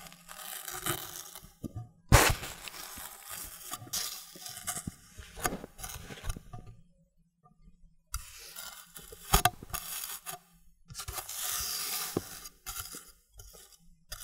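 A knife cuts through a crunchy cake with crisp crackling.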